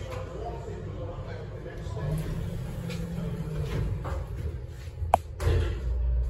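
An elevator button clicks.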